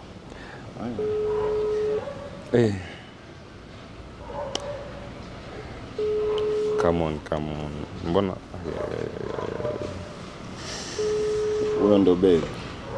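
A phone call tone beeps in steady, evenly spaced bursts.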